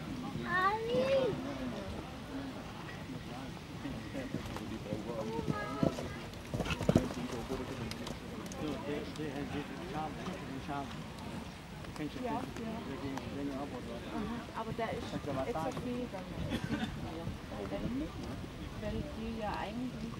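A horse canters over soft grass with muffled hoofbeats.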